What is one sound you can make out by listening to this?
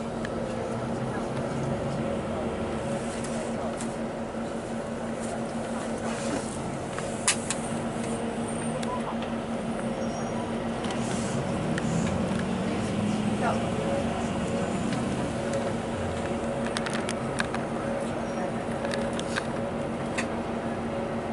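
A vehicle engine hums steadily close by.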